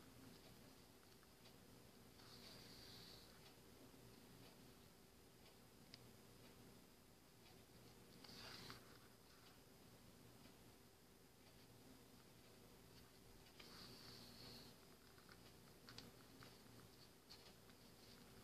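Hands softly handle and rustle small craft pieces with faint clicks and scrapes.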